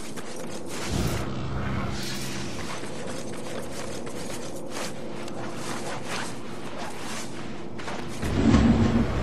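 Footsteps thud on a rooftop.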